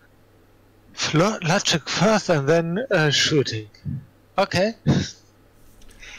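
A man speaks with animation over an online call.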